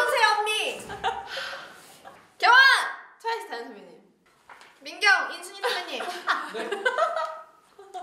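Young women laugh loudly.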